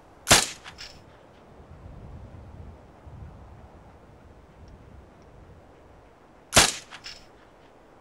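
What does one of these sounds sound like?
A rifle fires a sharp, loud shot that echoes briefly.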